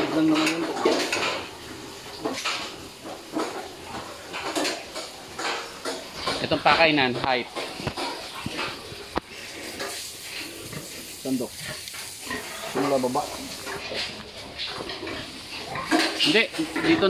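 Pigs grunt and squeal nearby.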